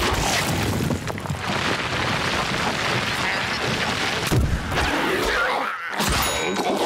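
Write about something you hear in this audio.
Loose earth sprays and rumbles as a creature burrows through the ground.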